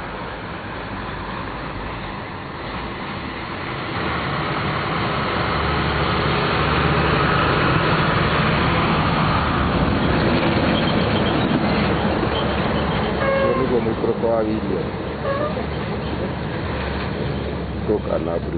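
Heavy trucks rumble past on a road outdoors.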